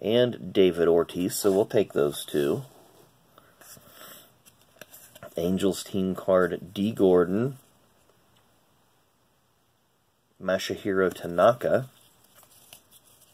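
Stiff trading cards slide and rustle against each other as they are shuffled by hand.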